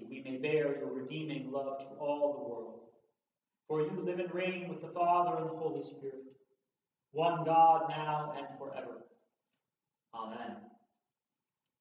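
A man reads aloud calmly in a quiet, echoing room.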